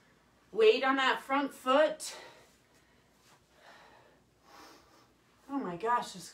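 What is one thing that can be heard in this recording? Sneakers thump and shuffle softly on carpet.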